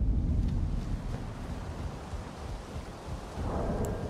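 Footsteps thud on a wooden bridge.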